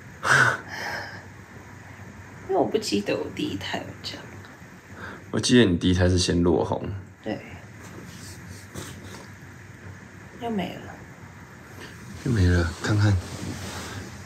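A young woman talks softly and laughs, close by.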